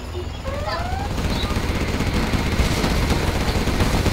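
Gunfire and explosions crackle and boom.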